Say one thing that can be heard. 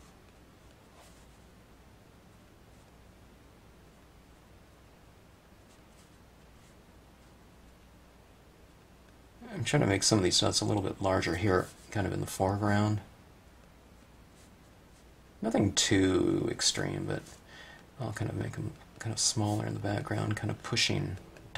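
A pen tip taps and scratches lightly on paper.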